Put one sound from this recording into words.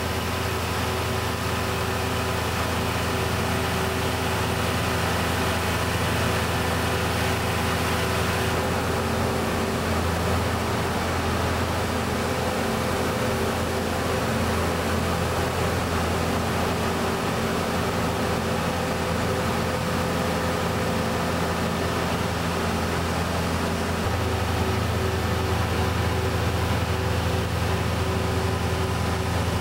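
A belt conveyor slinger hums and rattles.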